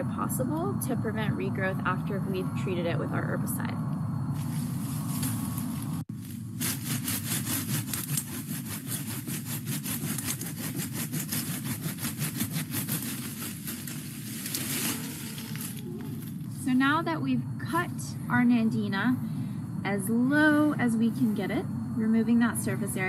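A young woman talks calmly to the listener over an online call.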